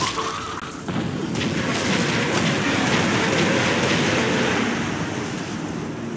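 A fire roars and crackles nearby.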